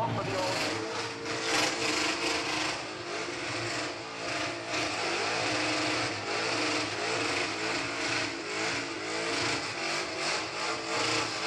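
Tyres squeal and hiss as they spin on the spot.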